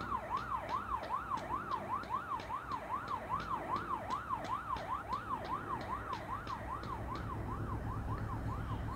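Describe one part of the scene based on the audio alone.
A siren wails rapidly up and down.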